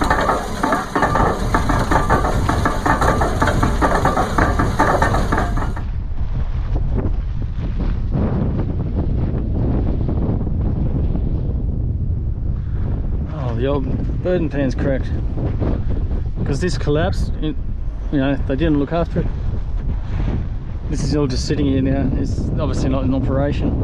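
Wind blows and rumbles against a microphone outdoors.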